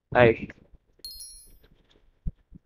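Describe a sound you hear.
A short electronic chime rings out.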